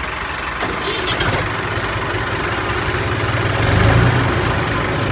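An engine rumbles low and steady through an exhaust pipe, growing louder.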